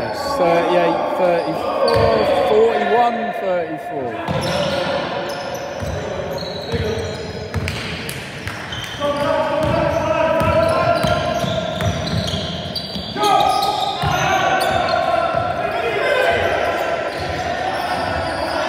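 Shoes squeak on a hard floor in a large echoing hall.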